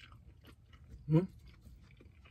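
A man lets out a short low hum of pleasure.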